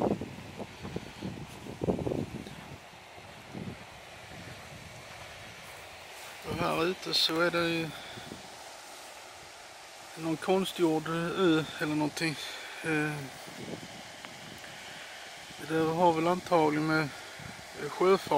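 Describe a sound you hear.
Small waves lap gently on a sandy shore.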